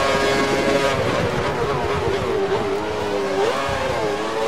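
A racing car engine drops in pitch as the car brakes for a corner.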